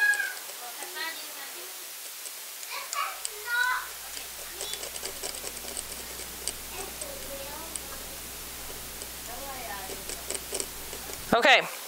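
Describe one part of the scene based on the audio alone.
A metal tool scrapes softly against a small hard surface.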